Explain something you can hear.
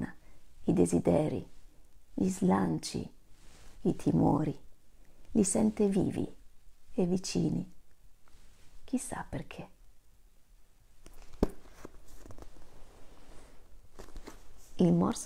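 A woman speaks calmly and warmly, close by.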